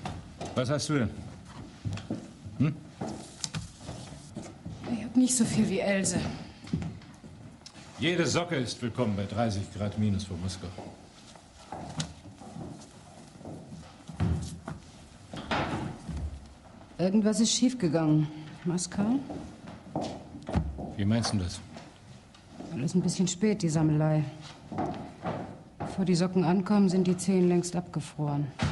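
A woman speaks with emphasis, close by.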